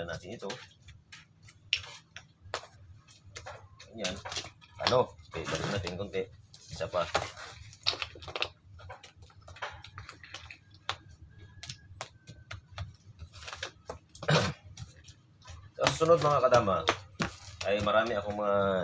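Plastic game pieces click and tap as they are set down and slid.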